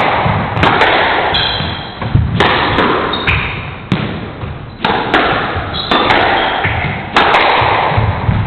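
A squash ball smacks sharply against the walls in a quick rally, echoing around a hard-walled court.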